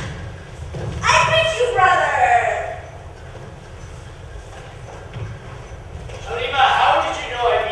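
A young man speaks loudly and theatrically in a large hall.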